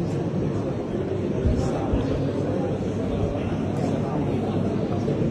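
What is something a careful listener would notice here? Several men murmur and talk quietly nearby.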